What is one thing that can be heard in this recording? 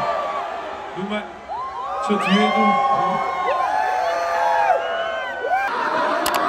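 A singer sings loudly through a sound system at a concert.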